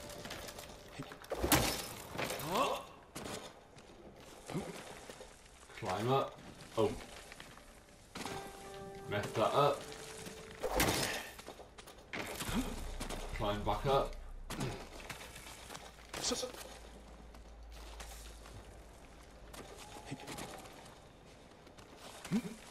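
Boots scrape and thud on rock during a climb.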